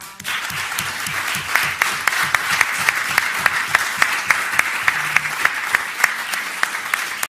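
An audience applauds steadily in a room.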